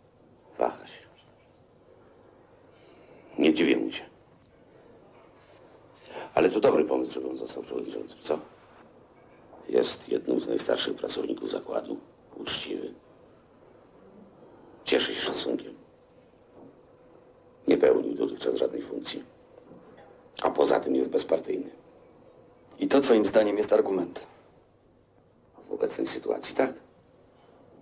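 A middle-aged man speaks quietly and seriously nearby.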